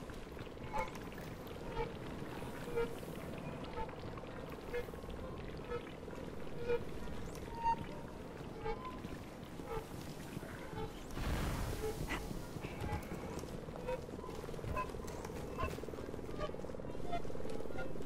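A soft electronic chime pulses about once a second.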